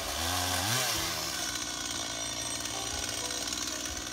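A chainsaw idles with a low rumble.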